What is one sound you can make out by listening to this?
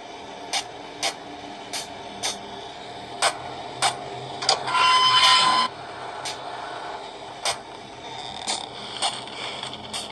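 Footsteps tap at an even pace through a small tablet speaker.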